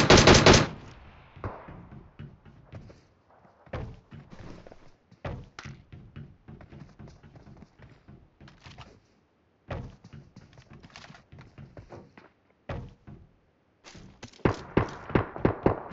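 Footsteps clang on metal roofs.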